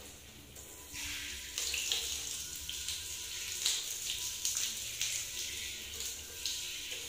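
Water sprays from a shower head and splashes against a bathtub.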